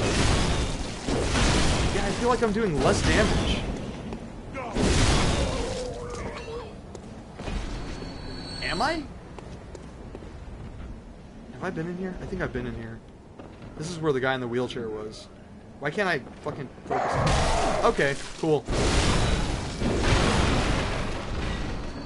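Game combat sounds clash and thud loudly.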